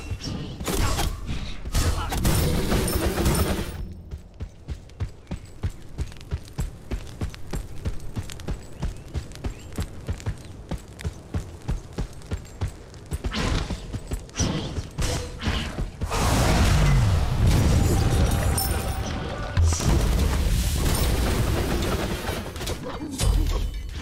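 Weapons clash and blasts burst in a fight.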